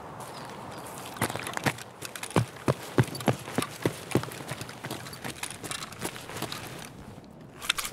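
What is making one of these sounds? Footsteps crunch on gravel and concrete.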